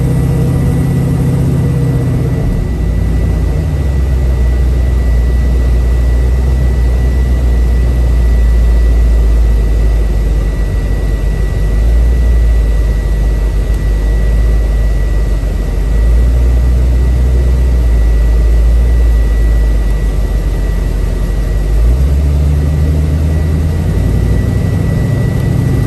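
Wind and road noise rush past the car.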